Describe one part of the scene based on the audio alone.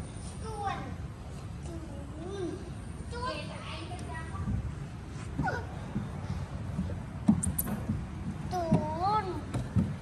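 Small hands and feet thump on a plastic slide.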